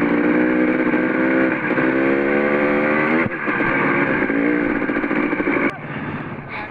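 A dirt bike engine roars close by as it rides along.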